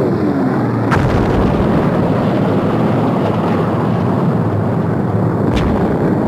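Fire roars and rumbles low and steadily after the blast.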